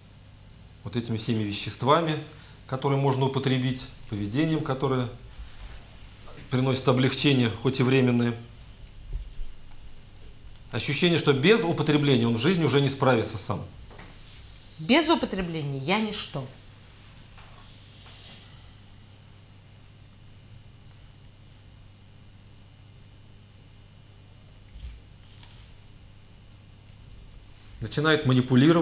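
A man speaks clearly into a microphone, as if giving a lecture.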